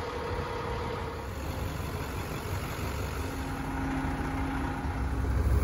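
A large diesel engine idles nearby with a low, steady rumble.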